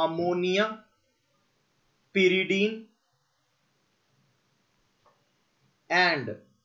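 A young man speaks with animation into a close microphone, in short bursts with pauses.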